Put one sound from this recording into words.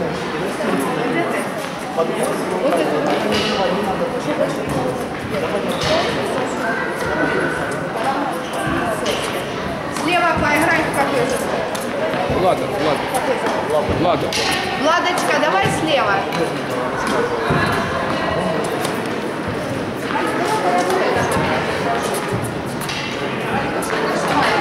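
A crowd of adults and children chatters in a large echoing hall.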